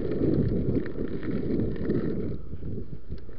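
Wind rumbles loudly against the microphone.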